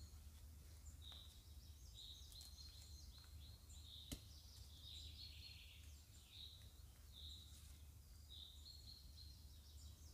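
A rope rubs and scrapes against tree bark.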